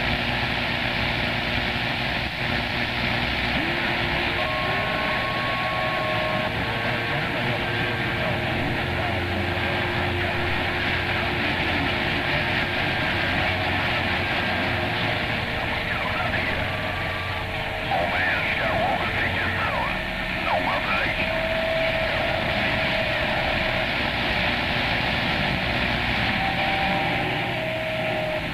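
A radio receiver hisses with steady static and faint whistling tones.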